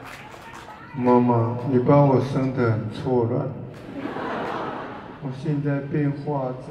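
An older man sings emotionally into a microphone over loudspeakers.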